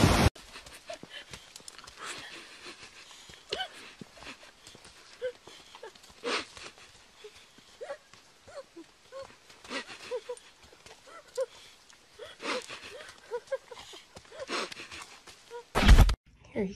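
A dog growls and whines while tugging.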